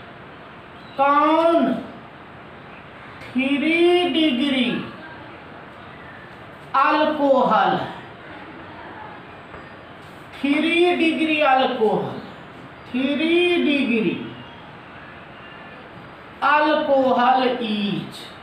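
A man speaks in short, slow phrases with pauses, close by.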